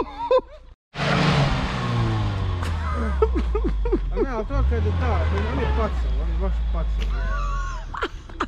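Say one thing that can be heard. A car engine revs hard and strains.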